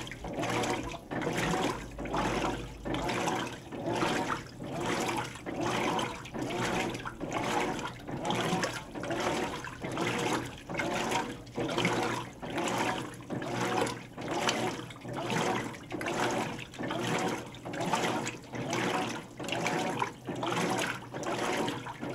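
Water sloshes back and forth in a washing machine in a steady rhythm, about once a second.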